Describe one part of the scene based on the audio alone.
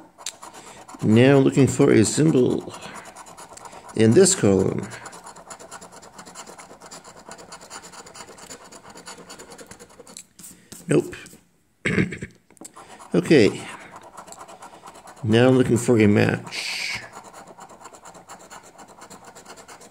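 A coin scratches across a scratch card.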